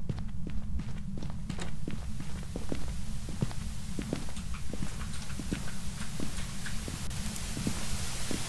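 Footsteps thud quickly on a wooden floor.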